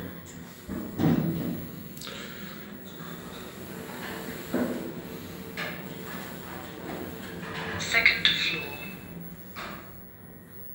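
An elevator hums steadily as it rises.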